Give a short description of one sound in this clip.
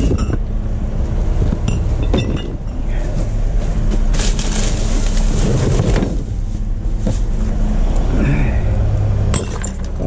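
Glass bottles clink against each other.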